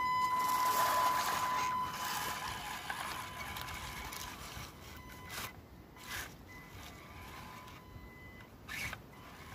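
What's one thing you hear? The electric motor of a radio-controlled truck whines as the truck drives away.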